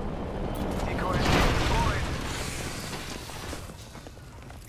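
An explosion booms close by, with debris rattling down.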